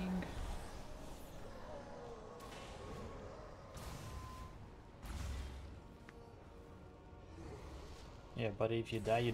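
Spells whoosh and crackle in a fiery battle.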